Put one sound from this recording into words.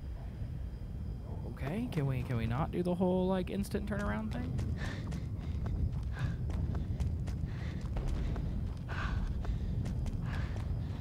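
Footsteps crunch quickly on hard ground.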